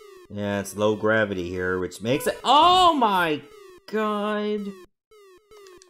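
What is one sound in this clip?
Bright electronic game tones chirp and warble in quick bursts.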